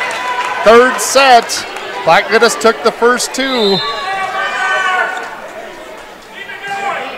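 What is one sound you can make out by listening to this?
A crowd of spectators cheers and shouts loudly in a large echoing gym.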